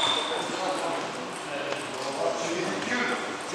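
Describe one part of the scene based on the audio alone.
A table tennis ball clicks back and forth in a large echoing hall.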